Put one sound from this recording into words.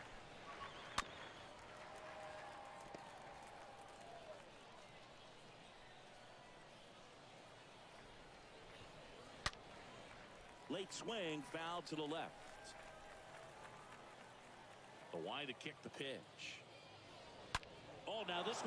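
A bat sharply cracks against a baseball.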